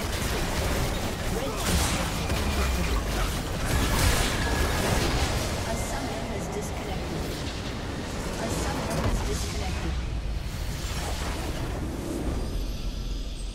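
Game battle effects clash and crackle loudly.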